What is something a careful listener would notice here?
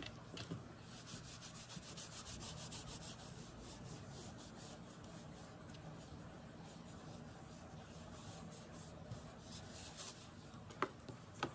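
A cotton pad rubs and scrubs briskly across a metal plate.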